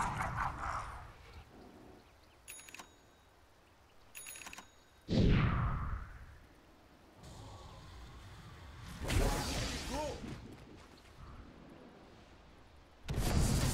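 Magical blasts whoosh and boom in short bursts.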